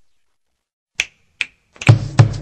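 Fingers snap.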